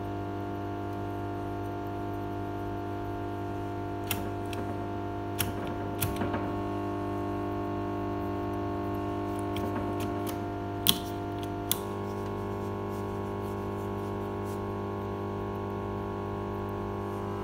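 An old valve radio hums steadily.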